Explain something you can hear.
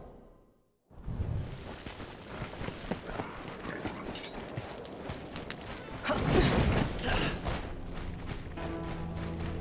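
Footsteps crunch on dirt as a warrior runs.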